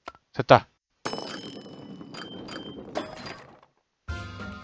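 A ball rolls along a wooden track.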